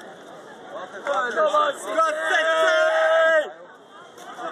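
Men sing and chant loudly close by, outdoors.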